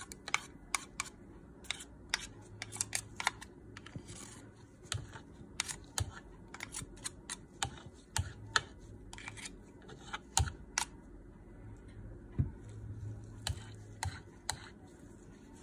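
A spatula scrapes and taps against a mixing bowl and a metal whisk.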